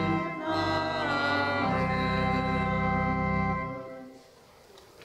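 A small group of men and women sing together in a hall with slight echo.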